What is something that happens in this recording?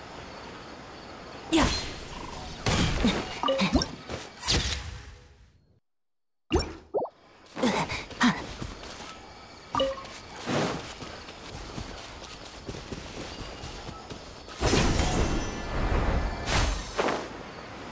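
A glider whooshes through the air.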